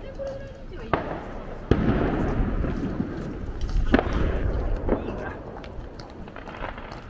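Fireworks boom in the distance.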